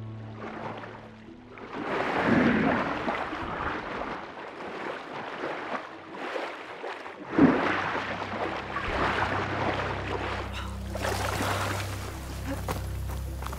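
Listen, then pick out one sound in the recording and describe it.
Water bubbles and rushes around a swimmer underwater.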